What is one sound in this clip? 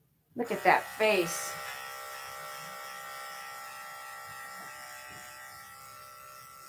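An electric clipper hums steadily close by.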